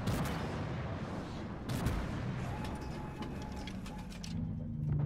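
Gunfire and explosions crack in the distance.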